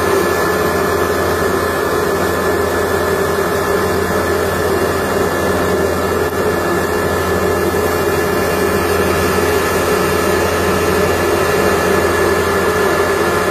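Grain pours and rustles out of a grinding machine.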